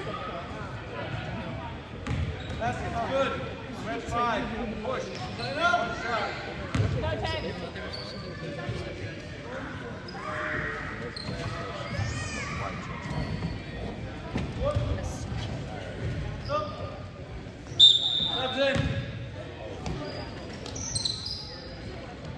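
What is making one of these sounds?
Young people's voices chatter and call out in a large echoing gym.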